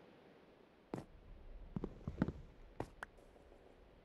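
Blocks clack as they are placed in a game.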